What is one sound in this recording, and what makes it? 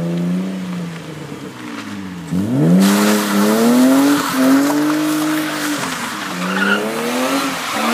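A car engine revs hard, rising and falling in pitch.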